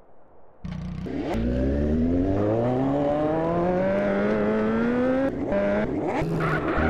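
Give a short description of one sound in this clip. A motorcycle engine revs up, its pitch rising steadily as it speeds away.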